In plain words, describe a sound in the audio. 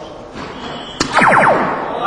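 A dart thuds into an electronic dartboard.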